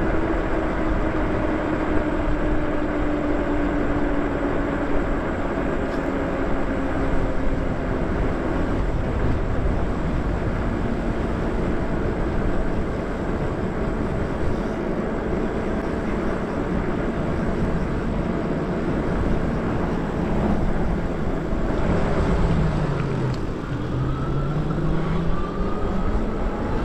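Wind rushes loudly past a microphone as a rider moves along outdoors.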